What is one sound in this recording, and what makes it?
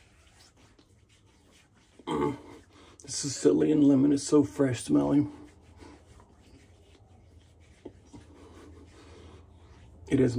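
A man pats and rubs his face with his hands.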